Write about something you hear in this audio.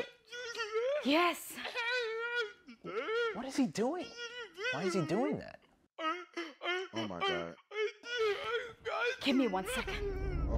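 A woman speaks emotionally, close by.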